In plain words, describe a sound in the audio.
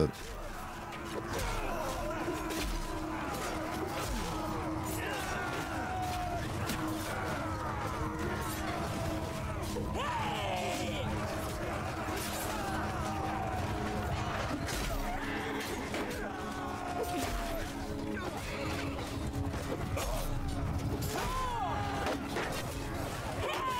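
A large crowd of men shouts and clamors outdoors.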